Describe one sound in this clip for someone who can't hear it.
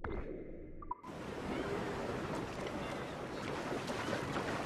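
Water splashes steadily around a swimmer.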